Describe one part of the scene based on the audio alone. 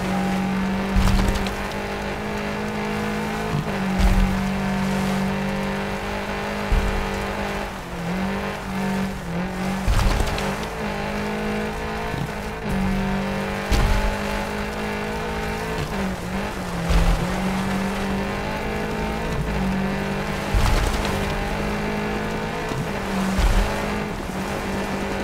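A rally car engine revs high and changes gear.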